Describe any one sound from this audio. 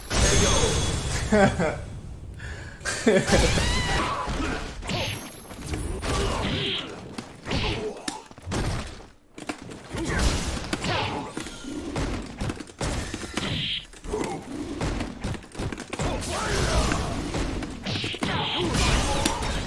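Fiery blasts whoosh and roar in a fighting game.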